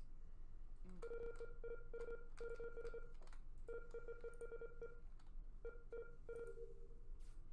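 A game plays short electronic beeps in quick succession.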